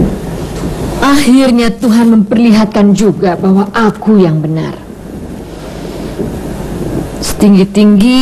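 A woman speaks in a pleading, distressed voice nearby.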